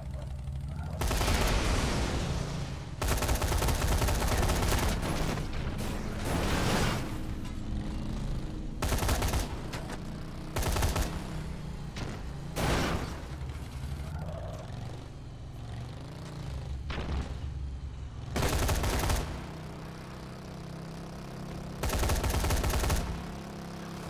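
A vehicle crashes loudly into bodies and objects again and again.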